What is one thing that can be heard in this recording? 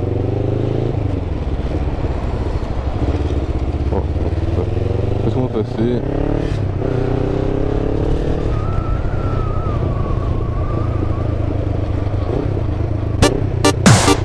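A motorcycle engine rumbles steadily and its pitch rises and falls as it rides along.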